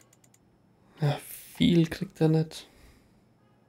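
A young man speaks briefly into a microphone, close and casual.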